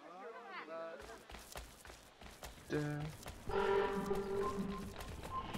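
Footsteps tread quickly on a dirt path.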